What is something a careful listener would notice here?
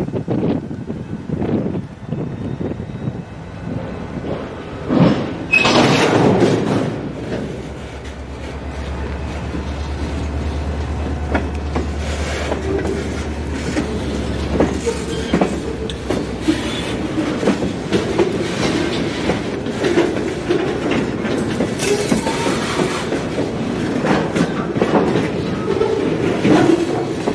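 A long freight train rumbles steadily past close by.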